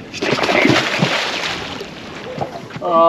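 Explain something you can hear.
Water splashes beside a boat.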